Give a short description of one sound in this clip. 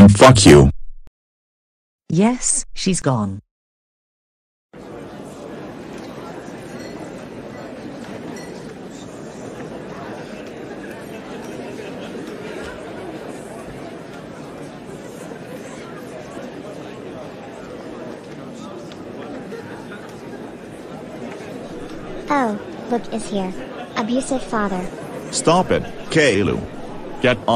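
A man speaks close by in a flat, computer-like voice.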